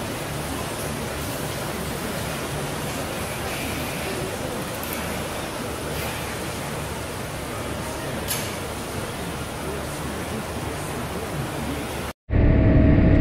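Milking machines hiss and hum steadily in an echoing hall.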